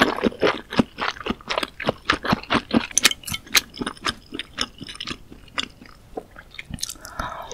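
A woman chews soft food wetly and loudly, close to a microphone.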